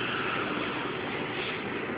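A power grinder whines steadily in a large echoing hall.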